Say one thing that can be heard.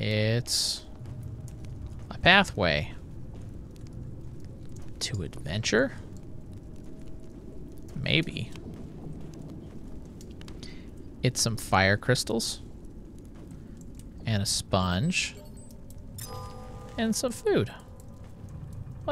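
A torch flame crackles and hisses softly.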